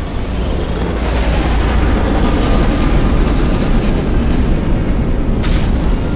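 A large spacecraft roars overhead as it descends.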